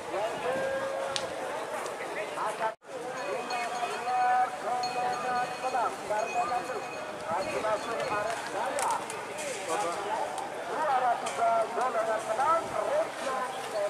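A large outdoor crowd of men chatters and calls out.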